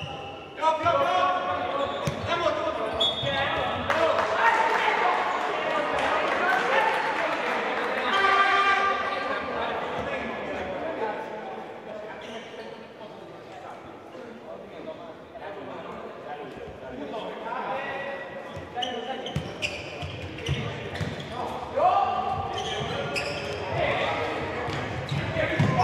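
A ball is kicked with dull thuds in an echoing hall.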